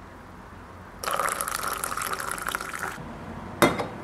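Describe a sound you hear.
Coffee splashes as it pours into a mug.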